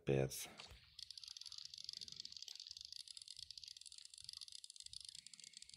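A fishing reel whirs with rapid clicks as line is wound in.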